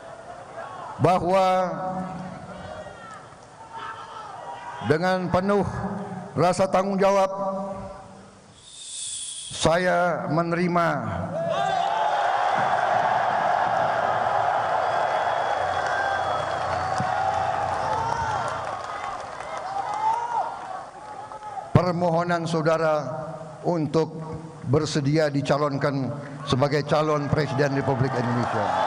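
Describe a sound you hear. An elderly man speaks forcefully into a microphone, in a large echoing hall.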